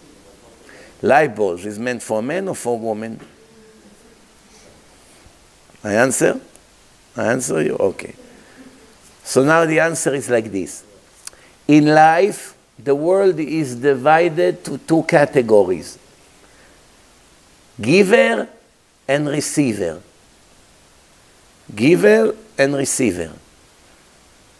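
A middle-aged man speaks with animation into a microphone in an echoing hall.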